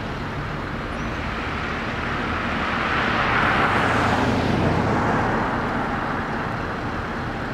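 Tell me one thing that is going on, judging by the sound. A pickup truck drives past close by, rising and then fading away.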